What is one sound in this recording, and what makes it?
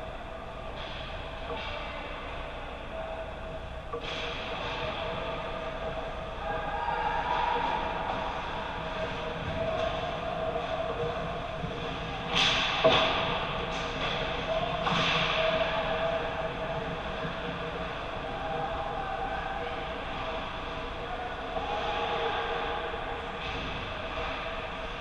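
Skates scrape and hiss on the ice in a large echoing rink.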